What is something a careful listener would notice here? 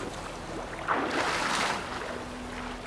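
Water splashes loudly as a swimmer plunges in.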